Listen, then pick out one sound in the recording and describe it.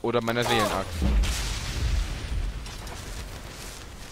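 A deep rumbling whoosh swells and slowly fades.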